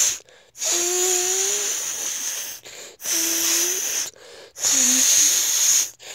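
A young boy groans in a strained voice up close.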